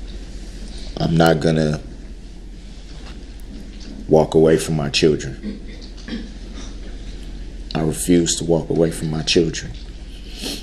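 A man speaks in short bursts.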